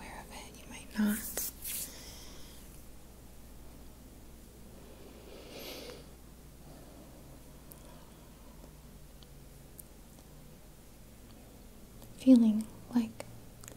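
A woman whispers softly close to a microphone.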